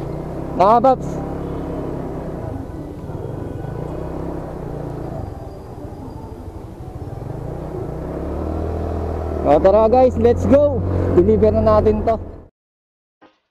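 A small motorcycle engine hums as it rides along.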